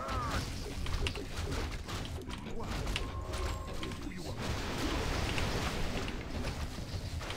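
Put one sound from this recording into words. Weapons clash and spells crackle in a game battle.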